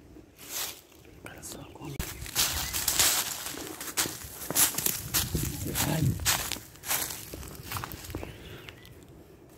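Dry leaves crunch and rustle underfoot as someone walks.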